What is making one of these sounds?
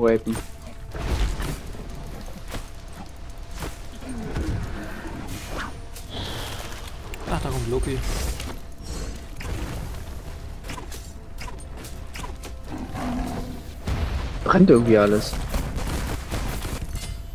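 Game combat sounds of blows and magic blasts clash and crackle.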